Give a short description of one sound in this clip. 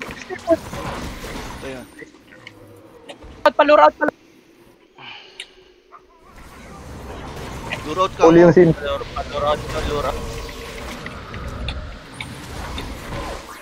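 Spells and weapons clash with bright magical bursts in a game battle.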